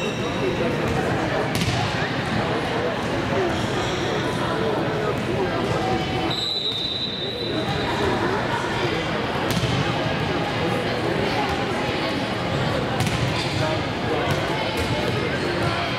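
A crowd of girls chatters loudly in a large echoing hall.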